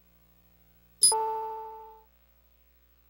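A video game item pickup chime rings.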